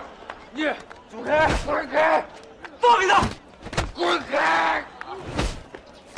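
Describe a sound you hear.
Men grunt while scuffling.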